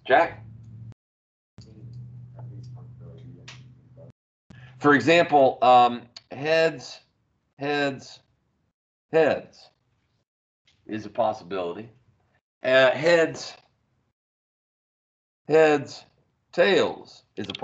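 A man speaks calmly into a microphone, explaining in short phrases.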